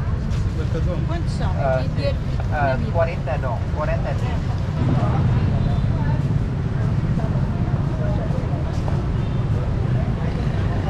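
A crowd murmurs in a busy open-air street.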